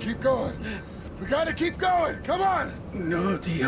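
A man urges someone on in a strained voice.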